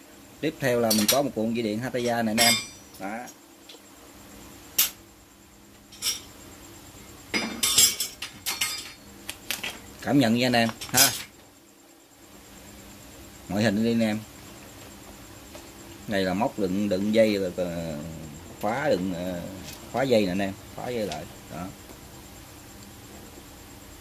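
A metal cable reel clunks and rattles as it is turned by hand.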